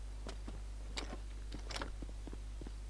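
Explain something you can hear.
A door bangs open.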